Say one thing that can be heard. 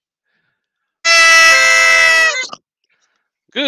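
A shrill whistle blows loudly through a microphone.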